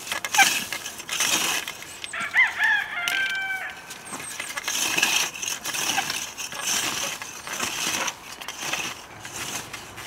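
Boots crunch on dry stalks and soil.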